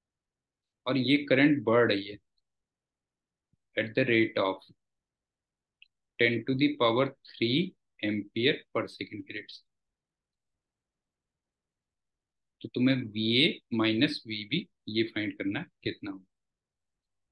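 A man explains calmly and clearly into a close microphone, with pauses.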